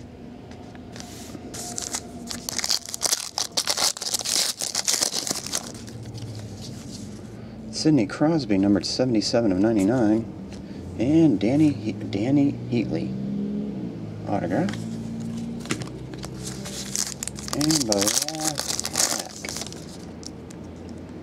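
A foil wrapper crinkles and tears as a pack is opened.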